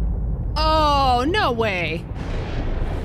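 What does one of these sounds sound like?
A woman cries out in alarm through a microphone.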